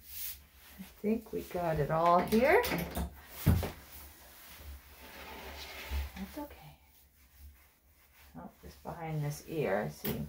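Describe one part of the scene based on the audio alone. A woman speaks softly and soothingly up close.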